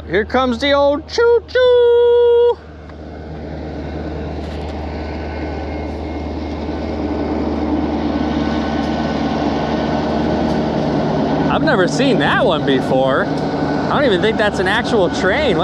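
A boat motor hums steadily at idle.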